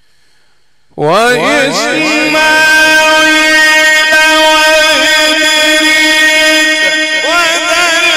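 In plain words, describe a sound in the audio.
An elderly man chants loudly and melodiously through a microphone and loudspeakers, with long held notes.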